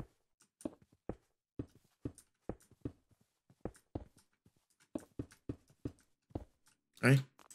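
Stone blocks knock softly as they are placed, one after another.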